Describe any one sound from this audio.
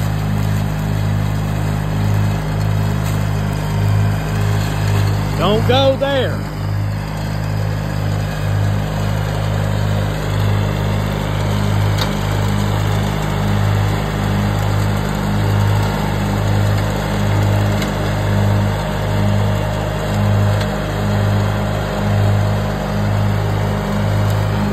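A lawn tractor engine hums steadily close by.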